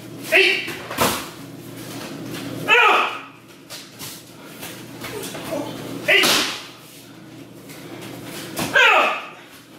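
Bodies thud onto a padded floor.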